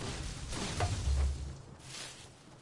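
A ball bursts with a dull pop.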